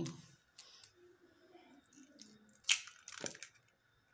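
An egg drops with a soft splat into a bowl.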